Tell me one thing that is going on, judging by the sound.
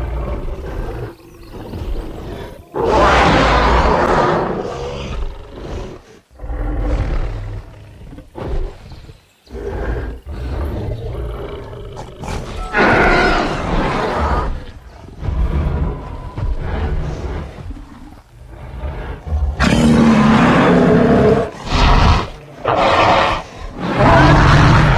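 Large beasts roar and growl loudly, over and over.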